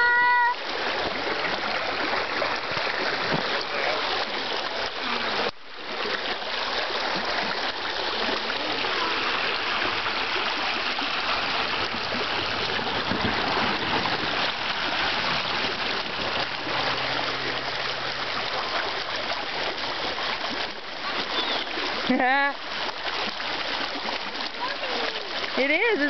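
A shallow stream rushes and splashes over rocks close by.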